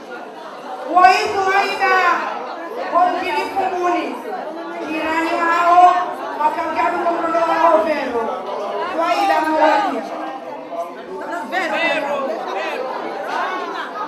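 An elderly woman sings or speaks loudly into a microphone, heard through loudspeakers.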